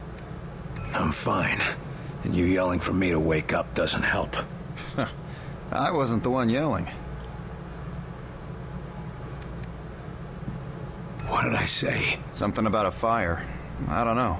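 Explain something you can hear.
A younger man answers in a sharp, questioning tone.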